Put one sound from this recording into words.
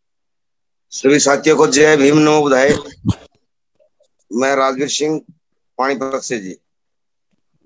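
A middle-aged man speaks over an online call.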